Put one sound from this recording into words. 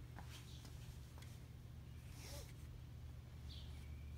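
A seat belt rustles as it is moved.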